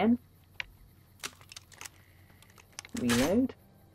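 Shells click into a shotgun as it is reloaded.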